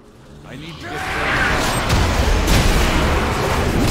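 Fantasy battle sounds clash and whoosh during a fight.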